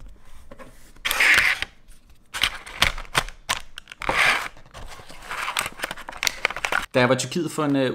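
A plastic case clicks and rattles in hands.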